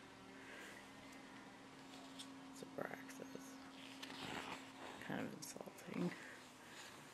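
Paper pages rustle and flap as a book's pages are turned.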